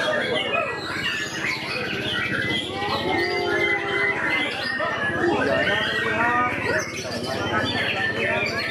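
A songbird sings loud, rapid, varied phrases close by.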